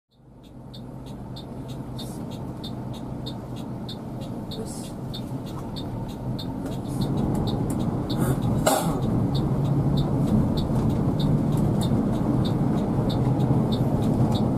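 A turn signal ticks rapidly and evenly.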